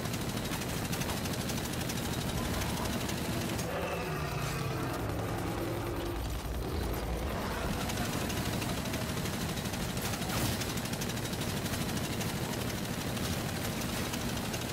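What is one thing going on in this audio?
Two automatic guns fire rapid bursts.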